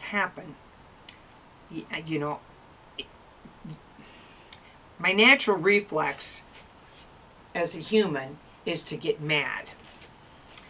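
A middle-aged woman talks calmly and close by.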